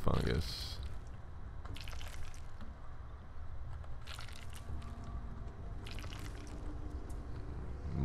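Footsteps crunch slowly on a rocky cave floor.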